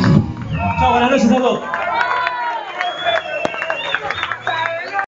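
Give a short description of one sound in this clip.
A rock band plays loudly live with electric guitars and drums.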